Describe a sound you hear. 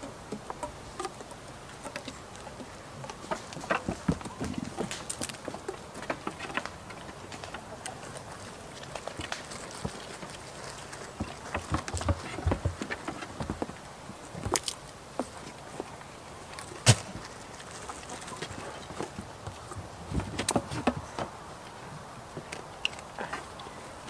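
Goats' hooves knock on a wooden ramp.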